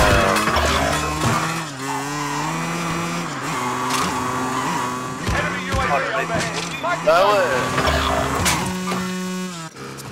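A motorbike engine roars and revs.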